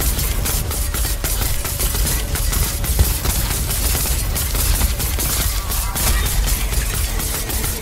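Weapons clash and slash rapidly.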